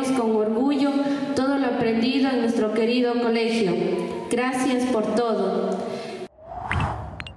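A group of young people sing together.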